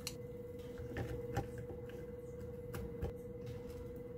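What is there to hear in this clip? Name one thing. Chopsticks tap against a plastic box.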